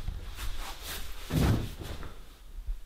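A man flops heavily onto a bed.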